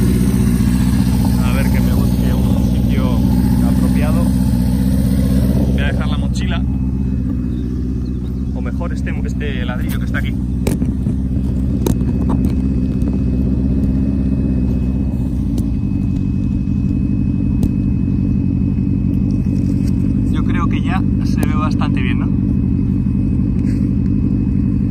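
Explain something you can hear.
A motorcycle engine idles steadily nearby.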